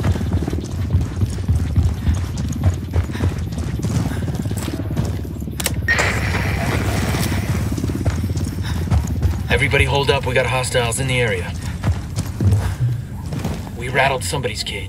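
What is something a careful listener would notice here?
Footsteps crunch quickly on gravel and dirt.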